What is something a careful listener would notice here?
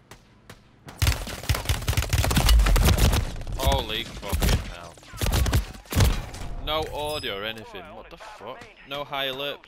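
Rapid gunfire blasts loudly close by.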